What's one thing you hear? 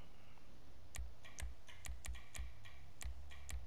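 Short menu clicks tick in quick succession.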